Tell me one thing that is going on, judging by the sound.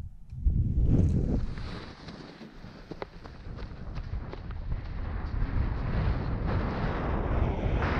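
Boots crunch and shuffle quickly on snow.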